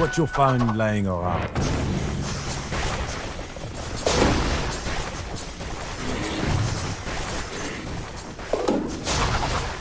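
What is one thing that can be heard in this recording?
Game weapons clash and strike during a fight.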